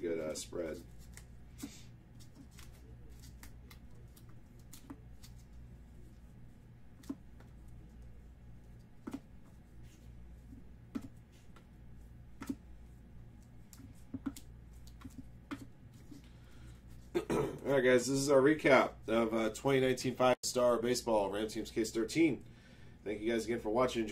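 Trading cards shuffle and click as they are flipped through by hand.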